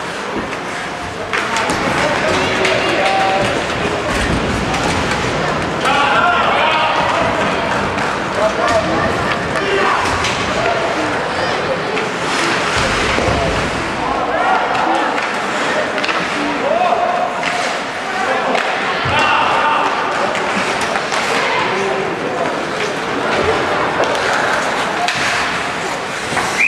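Young players shout to each other across an echoing rink.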